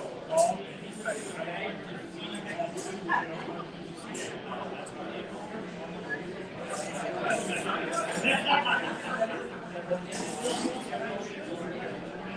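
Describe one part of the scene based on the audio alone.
Several men talk over each other at a distance, heard through a room microphone.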